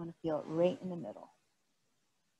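A woman speaks calmly close by.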